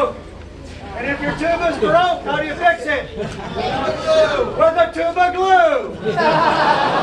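A man speaks to an audience through a loudspeaker.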